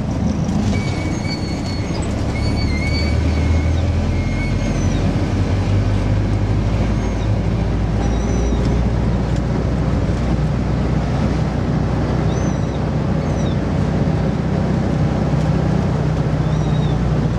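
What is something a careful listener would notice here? An old bus engine rumbles and drones steadily while driving.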